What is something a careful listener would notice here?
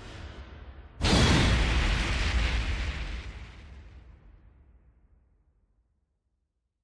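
A deep boom hits and slowly fades away.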